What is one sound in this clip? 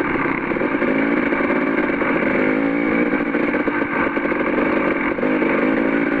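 Tyres crunch and rattle over loose rocks.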